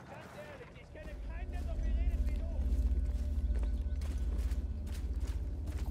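A tank engine rumbles with a deep, throbbing drone.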